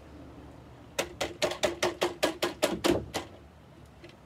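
A plastic lid clicks and rattles as it is twisted off a container.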